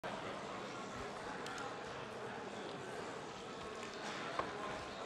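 An elderly man speaks steadily into a microphone in a large echoing hall.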